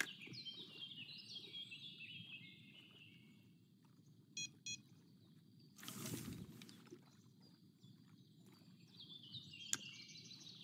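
Water laps gently and steadily.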